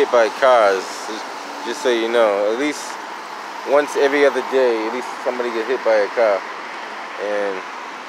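A car drives past close by.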